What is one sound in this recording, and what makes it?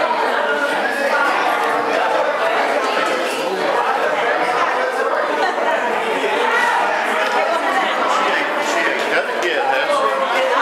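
A crowd of people chatter in a room.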